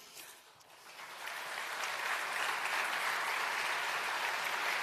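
A large crowd applauds in a big hall, swelling quickly to loud, steady clapping.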